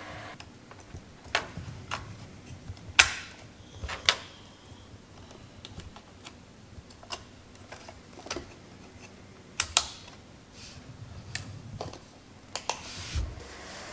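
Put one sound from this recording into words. Plastic and metal parts click and clack as a computer case is handled.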